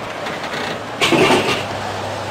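A can drops with a heavy clunk into a vending machine's tray.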